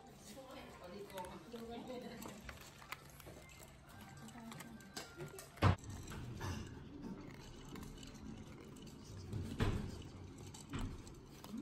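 Cats crunch dry kibble close by.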